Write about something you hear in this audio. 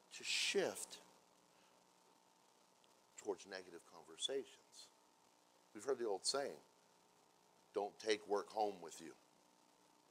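A man speaks calmly into a microphone, with long pauses between phrases.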